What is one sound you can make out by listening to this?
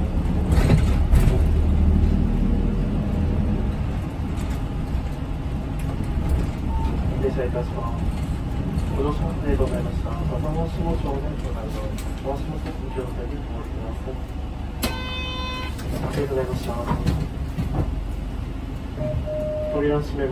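A bus engine rumbles low and steady while driving.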